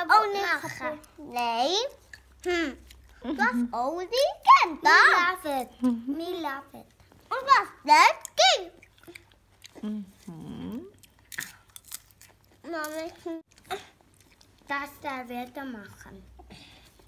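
A young girl talks playfully up close.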